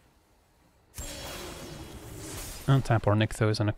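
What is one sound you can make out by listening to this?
A shimmering magical sound effect swells and rings.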